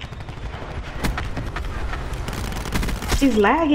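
Rapid gunfire crackles in short bursts.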